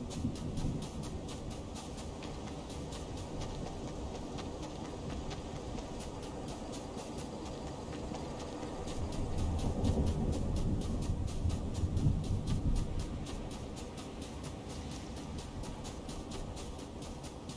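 Quick footsteps run over dirt and stone.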